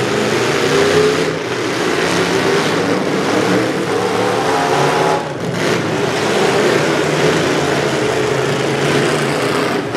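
Wrecked cars crunch and bang into each other.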